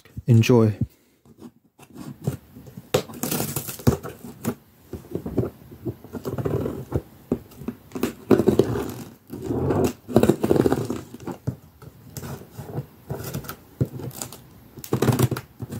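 Scissors cut through packing tape on a cardboard box.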